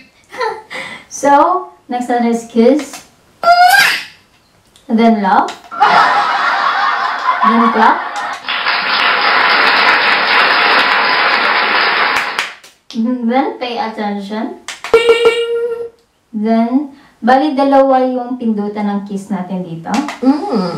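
A young woman sings close into a microphone.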